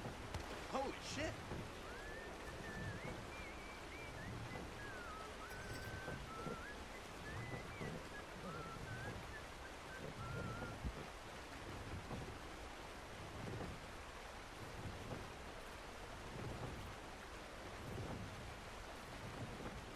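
Horse hooves thud softly on a dirt track.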